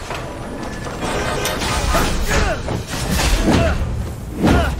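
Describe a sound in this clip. Blows clash and thud in a fight.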